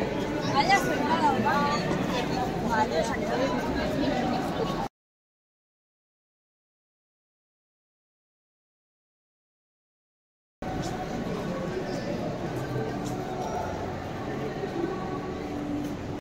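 A busy street crowd murmurs outdoors.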